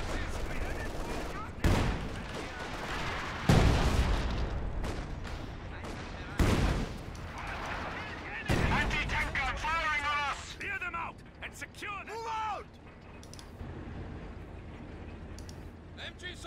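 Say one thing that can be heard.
Guns fire in bursts.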